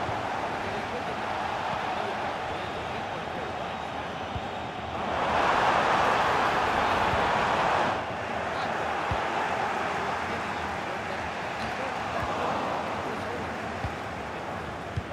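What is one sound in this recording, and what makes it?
A large crowd roars steadily and swells loudly for a few seconds.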